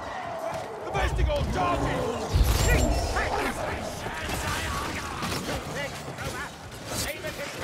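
Creatures snarl and clash weapons in a chaotic fight.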